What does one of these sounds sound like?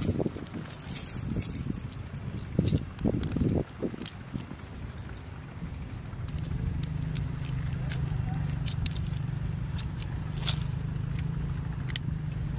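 Pliers click against a fishhook.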